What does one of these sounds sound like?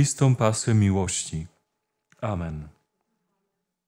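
A man speaks clearly and calmly up close.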